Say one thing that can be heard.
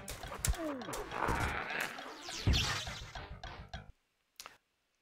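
Blows thud and weapons clash in a game fight.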